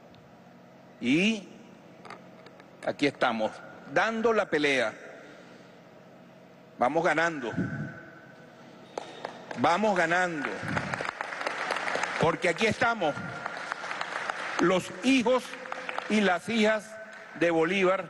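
A middle-aged man speaks with animation into a microphone, heard over a loudspeaker in an echoing room.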